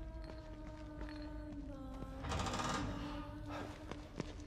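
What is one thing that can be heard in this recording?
A heavy door creaks and swings open.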